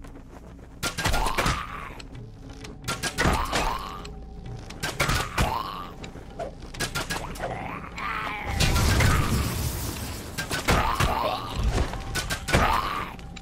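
A creature shrieks in rising and falling cries.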